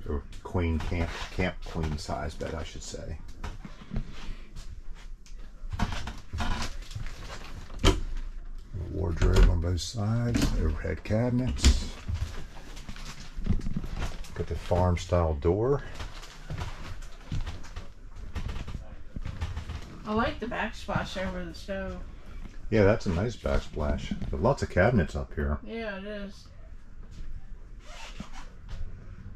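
A man talks close by, calmly and steadily.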